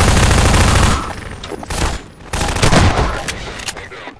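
A gun fires loud bursts of shots.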